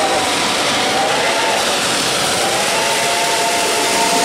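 Train wheels rumble on the rails.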